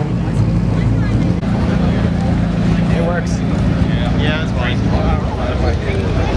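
A sports car engine idles with a deep steady rumble.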